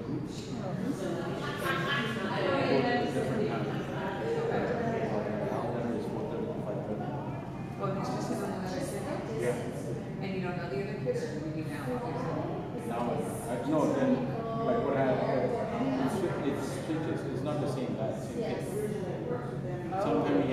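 Spectators in the stands talk and call out loudly.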